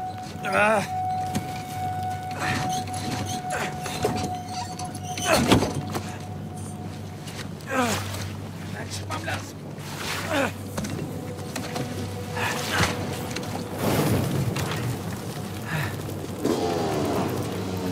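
A man grunts and groans with strain, close by.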